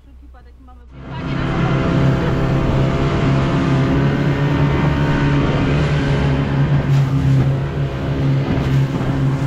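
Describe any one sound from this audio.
An outboard motor drones steadily.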